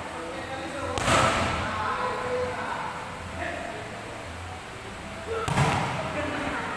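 A ball is struck hard with a sharp slap in an echoing hall.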